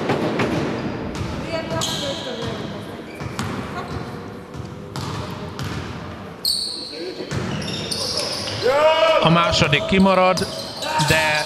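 A basketball thuds as it bounces on a wooden court.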